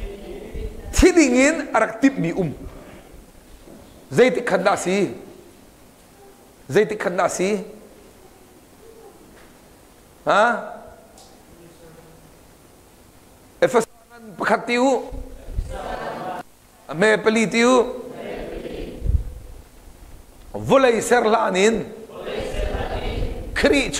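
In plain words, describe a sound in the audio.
A middle-aged man speaks with animation through a clip-on microphone, pausing often, in a slightly echoing room.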